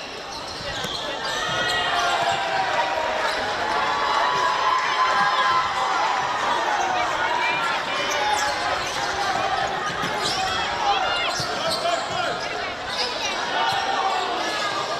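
Young women shout to each other across an outdoor field.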